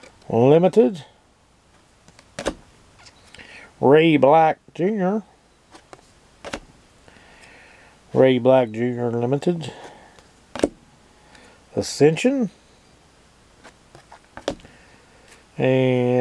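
A stiff card taps softly on a table.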